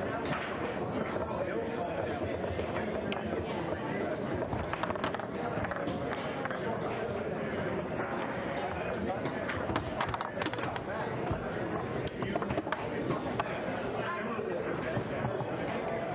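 Foosball rods slide and rattle in their bearings.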